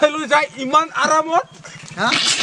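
A young man speaks with animation close by.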